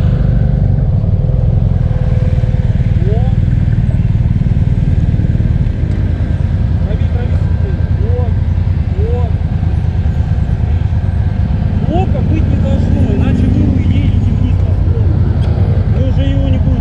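A motorcycle engine idles with a deep, steady rumble close by.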